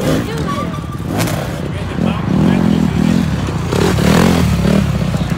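A dirt bike engine revs loudly nearby.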